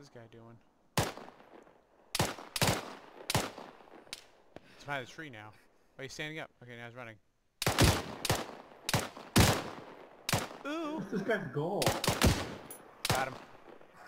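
A rifle fires loud, sharp shots, one after another.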